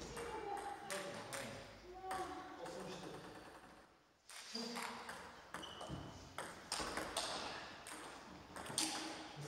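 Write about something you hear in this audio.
A ping-pong ball clicks quickly back and forth off paddles and a table.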